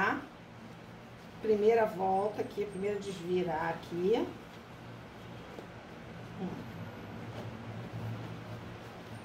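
Fabric rustles softly as it is folded and handled.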